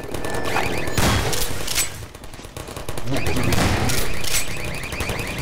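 Gunshots boom loudly.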